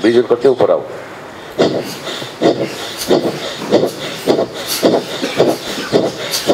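A middle-aged man calls out in short, rhythmic bursts through a microphone.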